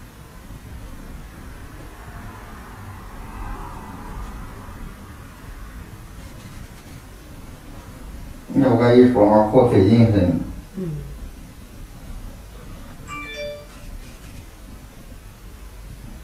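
A thin tool scrapes and crackles softly inside an ear, close up.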